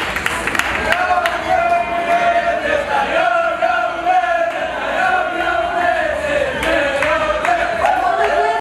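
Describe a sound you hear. A group of young people sings together loudly.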